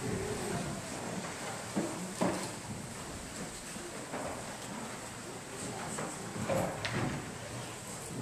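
A congregation of men and women murmurs and shifts quietly in a large echoing hall.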